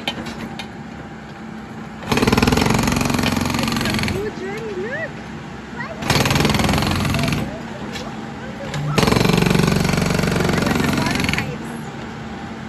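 A diesel engine idles steadily.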